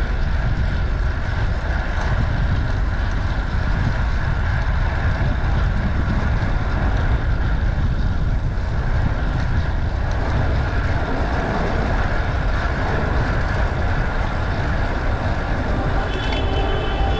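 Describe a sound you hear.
Bicycle tyres hum steadily on the road.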